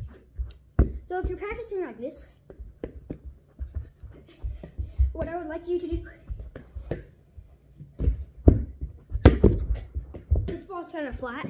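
A soccer ball thumps repeatedly against a foot and the floor.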